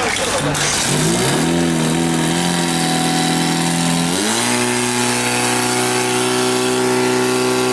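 A pump engine starts and runs with a loud steady drone, then revs higher.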